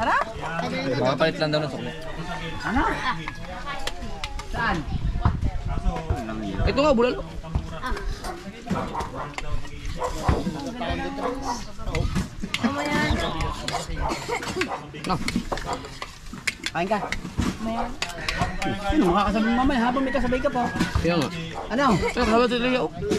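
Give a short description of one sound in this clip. Several men talk casually close by, outdoors.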